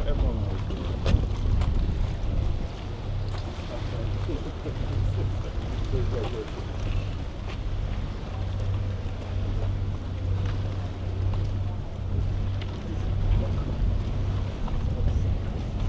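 Footsteps shuffle on a metal walkway.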